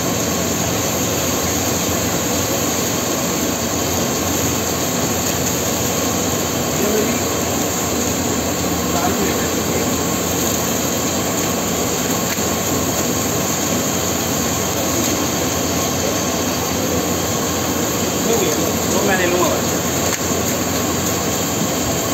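Food sizzles and hisses steadily on a hot griddle.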